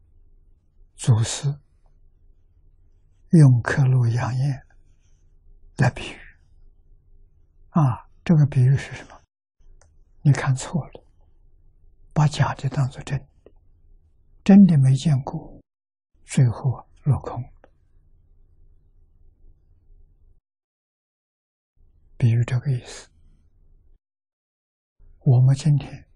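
An elderly man speaks calmly and slowly into a close microphone, in short phrases with pauses.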